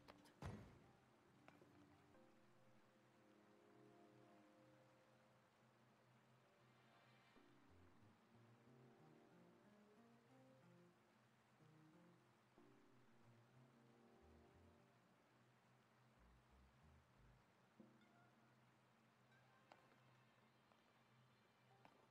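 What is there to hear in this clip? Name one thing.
Gentle plucked music plays softly.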